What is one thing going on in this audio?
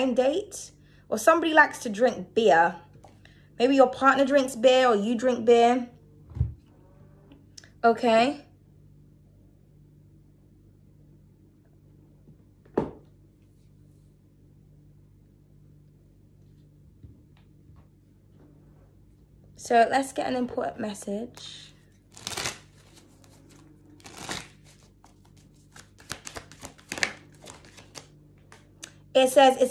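A young woman speaks softly and close to a microphone, in short bursts with pauses.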